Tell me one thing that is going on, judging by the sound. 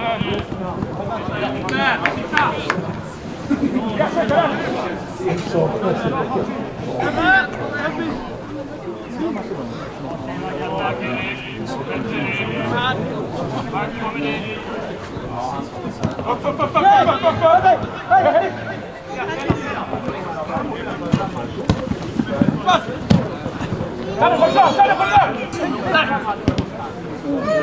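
Men shout to one another across an open field, heard from a distance.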